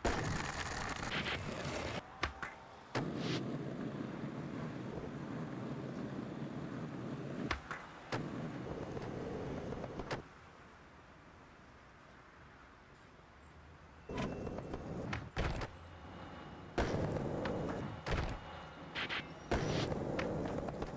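Skateboard wheels roll and clatter on pavement.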